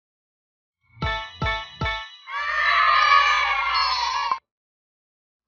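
Chimes ring out in a short cheerful jingle.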